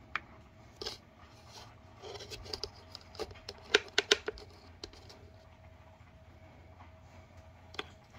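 Plastic containers knock and click lightly as they are handled.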